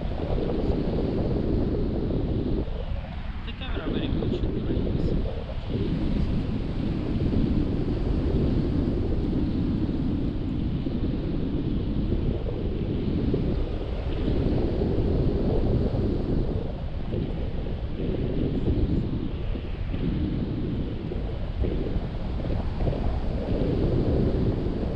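Strong wind rushes and buffets loudly past, outdoors high in the air.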